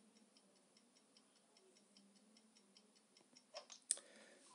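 A game timer ticks steadily.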